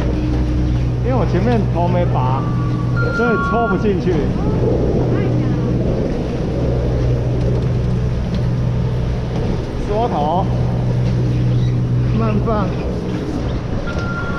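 Chairlift machinery hums with a low, steady drone.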